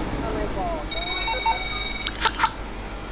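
A phone rings with a short electronic tone.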